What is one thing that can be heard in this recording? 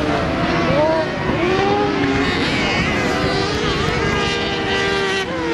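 A racing buggy engine revs loudly and whines, rising and falling in pitch.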